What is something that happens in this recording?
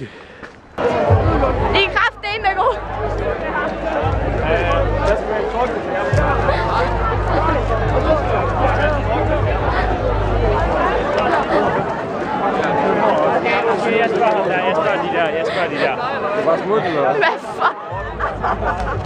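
A crowd chatters and shouts loudly.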